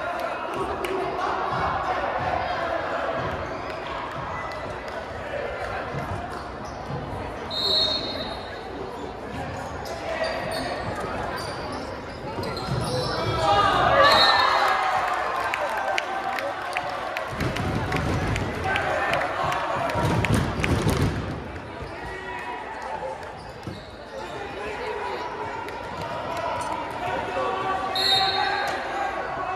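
A crowd of spectators chatters nearby in a large echoing gym.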